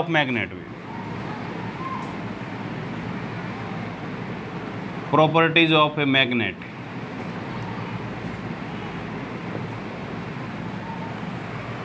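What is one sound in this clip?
A marker squeaks on a whiteboard.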